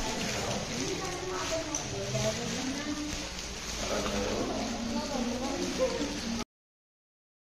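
Children talk and chatter nearby in a room.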